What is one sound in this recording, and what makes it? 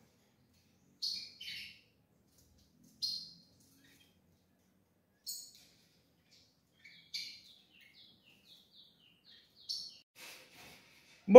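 Small caged birds chirp in short, high bursts.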